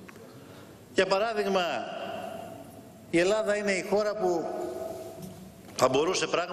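A man speaks forcefully into a microphone in a large echoing hall.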